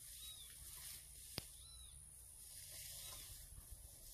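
Leaves rustle as a plant stem is handled close by.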